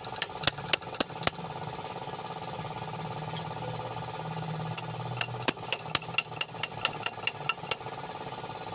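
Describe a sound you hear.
A metal wrench clicks and ratchets against a bolt.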